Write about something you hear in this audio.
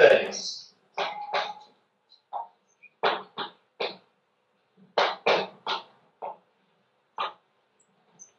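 Chalk taps and scrapes on a blackboard in short strokes.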